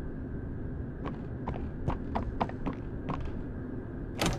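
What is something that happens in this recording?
Footsteps tap steadily across a floor.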